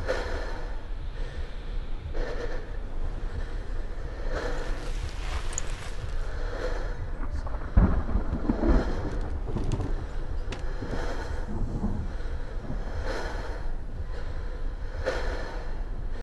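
Flames crackle softly.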